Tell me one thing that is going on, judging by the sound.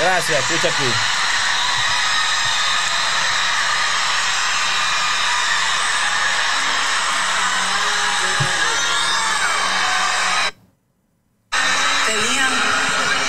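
Sound plays loudly from a phone held up to a microphone.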